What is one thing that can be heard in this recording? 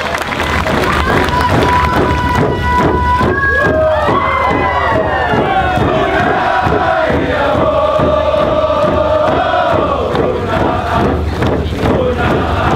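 A crowd sings loudly together.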